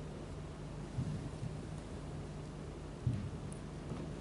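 A person shifts about on a floor mat with soft, dull thumps.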